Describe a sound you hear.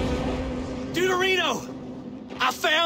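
A man shouts with excitement.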